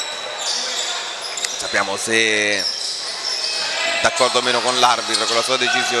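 A basketball bounces on a wooden floor as a player dribbles.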